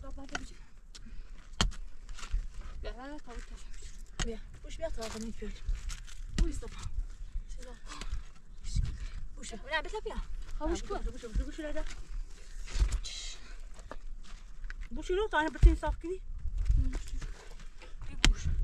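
Women talk nearby with animation.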